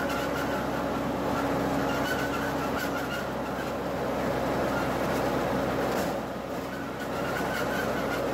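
A motorbike engine hums steadily as it rides slowly.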